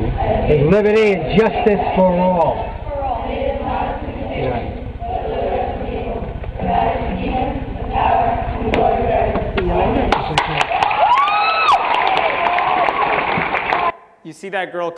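A crowd's voices echo through a large hall, heard through a loudspeaker.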